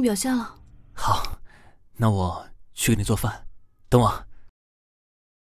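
A young man speaks gently up close.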